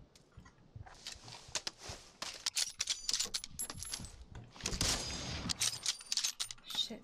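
Gunshots crack in a video game.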